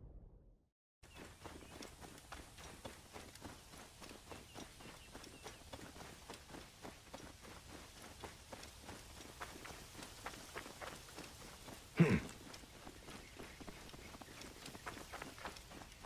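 Footsteps rustle through dry grass at a steady run.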